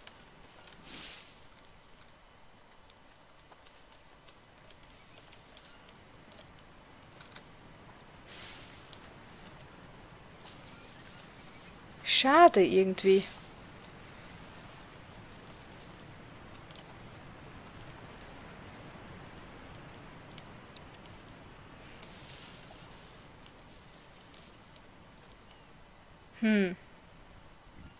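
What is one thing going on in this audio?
Footsteps rustle through dense leafy plants.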